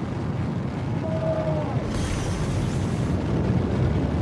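An energy shield hums and crackles as it flares up.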